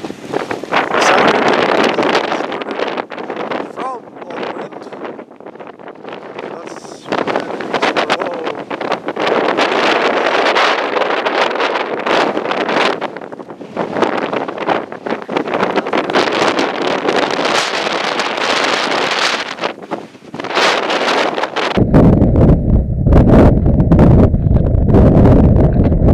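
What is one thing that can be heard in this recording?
Strong wind gusts roar outdoors during a storm.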